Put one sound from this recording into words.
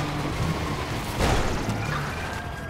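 A car scrapes against a concrete pillar with a crunch.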